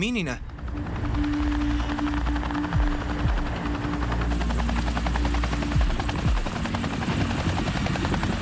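Helicopter rotor blades thump steadily overhead.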